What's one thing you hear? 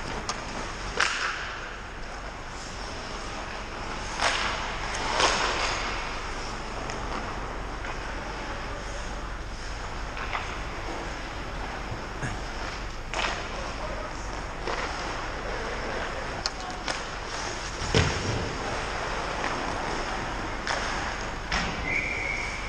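Hockey sticks and pucks clack and knock against the ice and boards.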